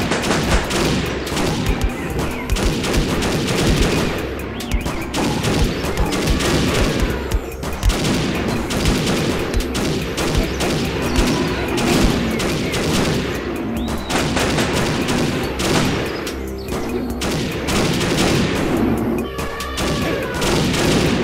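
A rifle fires shot after shot.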